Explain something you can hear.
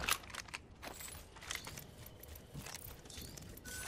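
A rifle clicks and rattles as it is drawn.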